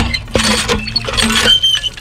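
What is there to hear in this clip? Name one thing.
Water gushes from a pipe and splashes onto a hand.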